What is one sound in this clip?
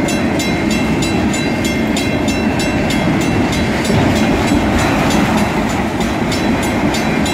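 A crossing bell rings rapidly and steadily.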